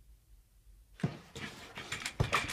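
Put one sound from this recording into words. A chair rolls and rattles.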